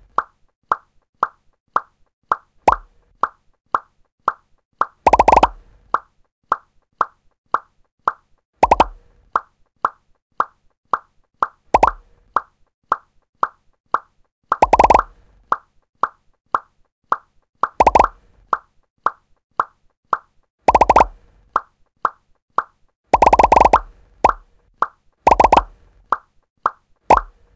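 Short pitched blips repeat at a quick, steady beat as a game ball bounces.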